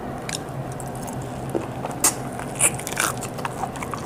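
A woman bites into crunchy food with a crisp crunch.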